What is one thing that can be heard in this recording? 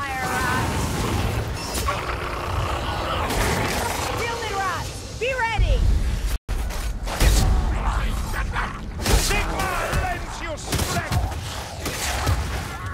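Blades swing and clash in a fast fight.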